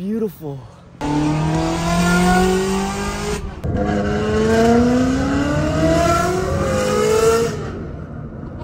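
A car engine revs loudly, rising in pitch again and again.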